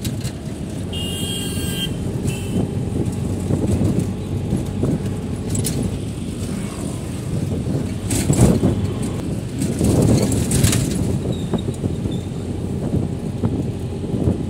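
Traffic passes by on the street.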